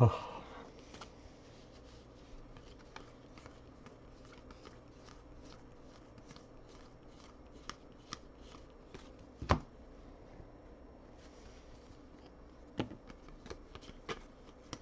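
Cards flick and tap softly as they are sorted by hand.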